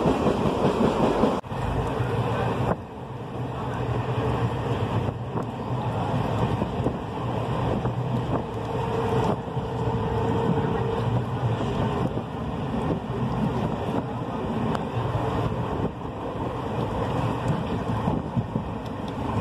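Hailstones clatter against metal bars.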